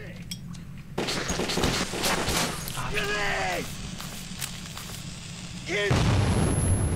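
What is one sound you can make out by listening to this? A lit fuse fizzes and sputters.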